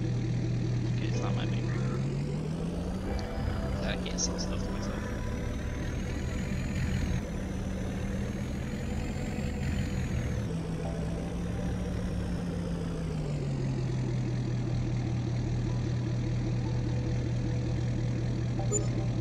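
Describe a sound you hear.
A pickup truck's engine rumbles, revving up and down, then settles to a steady idle.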